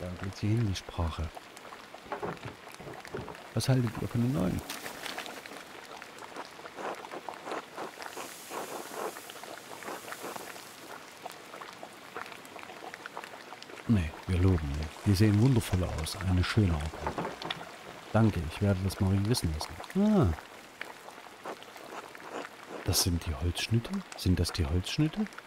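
A man talks calmly and close to a microphone, reading out and commenting.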